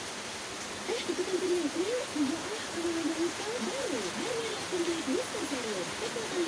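A young woman talks cheerfully through a television speaker.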